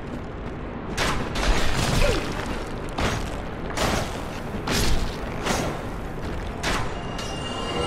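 A sword swings and strikes with heavy blows.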